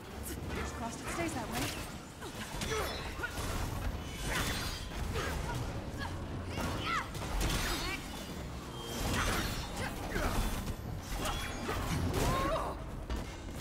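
Heavy blows thud and clang against metal robots.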